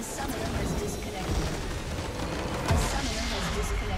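A large magical explosion booms and crackles.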